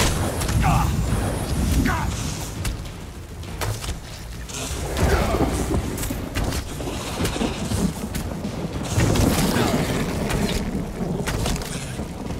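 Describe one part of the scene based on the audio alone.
Magic spells whoosh and crackle.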